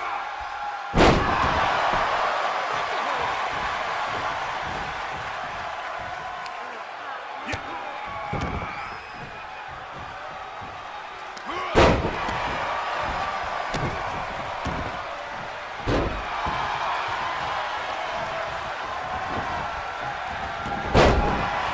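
Bodies slam hard onto a wrestling mat with loud thuds.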